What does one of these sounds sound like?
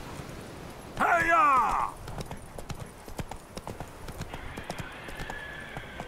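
A horse's hooves thud at a gallop on a dirt path.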